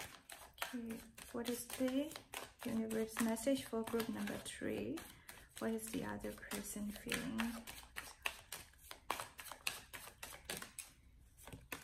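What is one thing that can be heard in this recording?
Playing cards rustle and tick as they are shuffled by hand.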